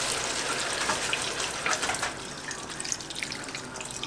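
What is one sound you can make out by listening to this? Liquid pours into a sizzling pan.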